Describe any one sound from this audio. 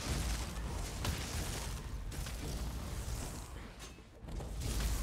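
Electric magic crackles and buzzes loudly.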